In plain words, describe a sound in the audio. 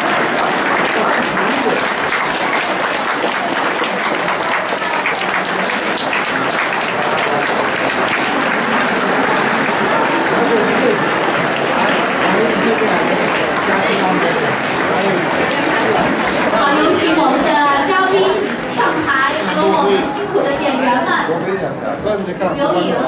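An audience applauds loudly in a large echoing hall.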